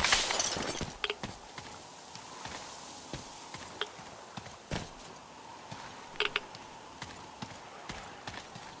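Footsteps crunch over dry debris.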